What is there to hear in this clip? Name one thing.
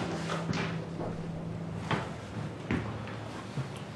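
Footsteps walk across a hard floor.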